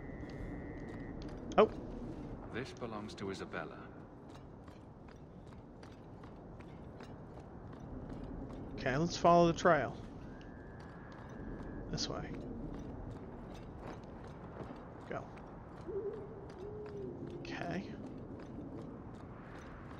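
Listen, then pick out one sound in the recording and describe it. Footsteps fall on a stone path.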